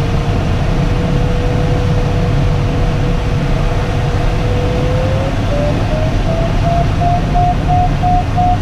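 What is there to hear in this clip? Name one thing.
An electronic flight instrument gives a steady tone that rises in pitch and breaks into quick beeps.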